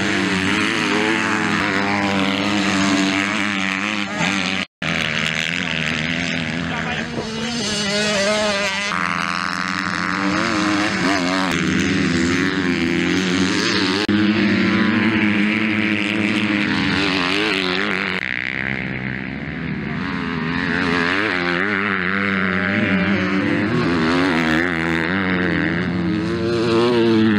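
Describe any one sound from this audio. Motocross bikes rev hard and roar past outdoors.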